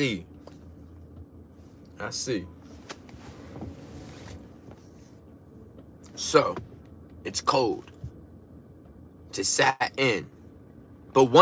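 A young man speaks expressively in short bursts, close to the microphone.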